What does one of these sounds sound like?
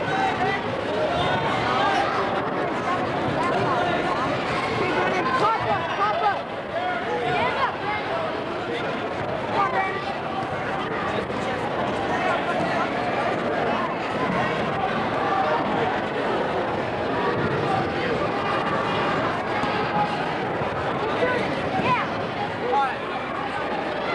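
Young boys scuffle and thump on a wrestling mat.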